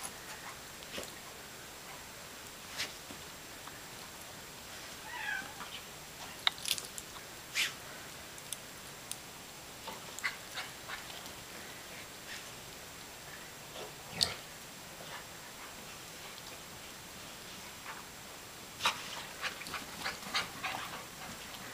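Snow crunches under a dog's paws.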